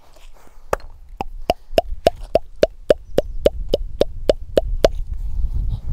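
Cupped hands slap rhythmically and quickly against bare skin.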